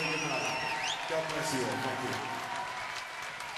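A band plays a final chord on stage.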